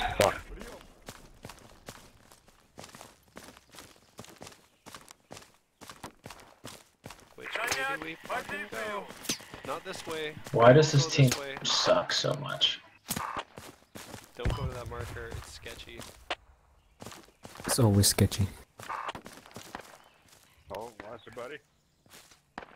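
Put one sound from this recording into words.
Footsteps tread softly through grass.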